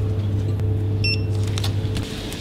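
A card terminal beeps briefly.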